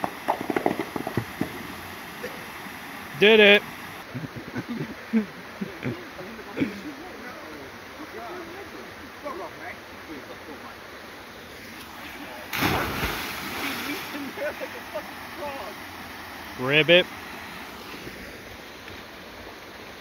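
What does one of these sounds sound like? Water rushes and splashes down a small waterfall.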